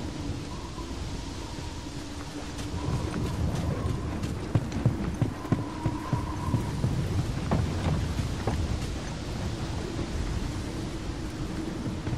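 Footsteps run quickly over grass and wooden boards.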